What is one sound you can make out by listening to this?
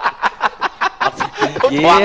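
A woman laughs through a microphone.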